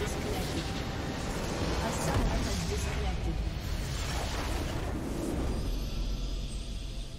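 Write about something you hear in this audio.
A large structure explodes with a deep rumble.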